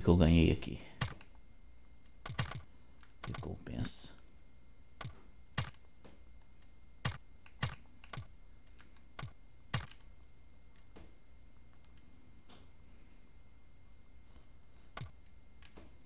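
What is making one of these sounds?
Short menu clicks sound as options are selected.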